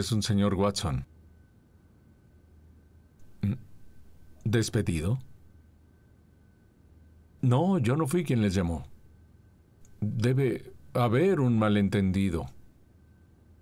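A man talks anxiously on a phone nearby.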